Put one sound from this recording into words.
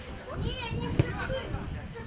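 A football is kicked on an outdoor pitch.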